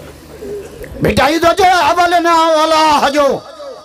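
A man chants loudly through a microphone in a long, drawn-out melodic call.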